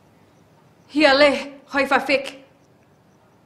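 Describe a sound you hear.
A woman speaks quietly and tensely, close by.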